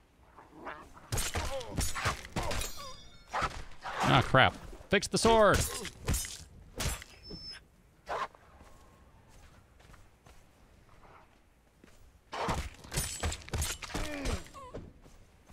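A blade slashes and strikes flesh with wet thuds.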